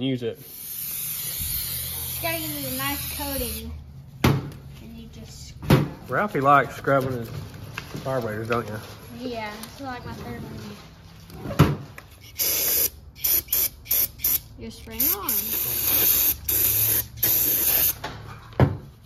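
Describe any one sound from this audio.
A spray can hisses in bursts.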